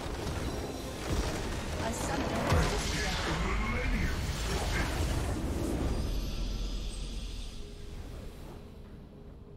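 A loud magical blast booms and crackles, then fades.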